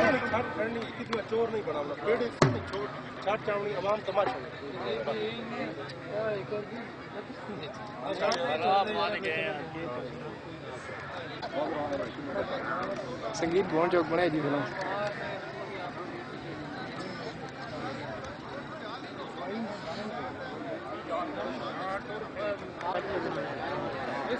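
Several men talk over one another outdoors.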